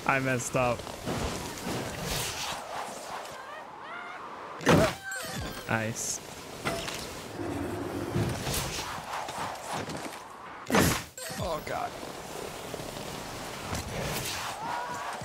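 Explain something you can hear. A snowboard hisses and scrapes across snow.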